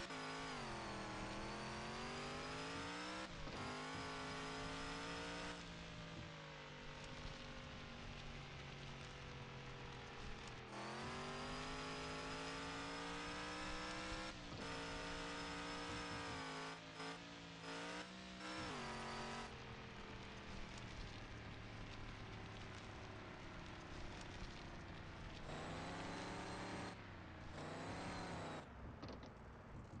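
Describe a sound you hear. A truck engine revs up and down as it drives.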